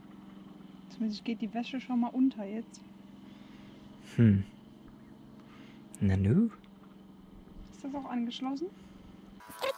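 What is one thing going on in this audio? A young woman speaks calmly close by.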